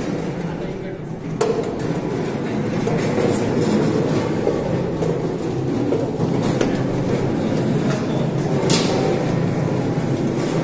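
A machine's drum rattles and rumbles as it turns.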